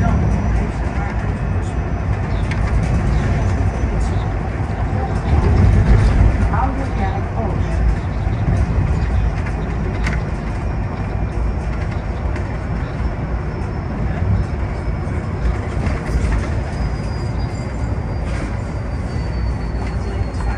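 A bus engine rumbles steadily from inside the bus as it drives along.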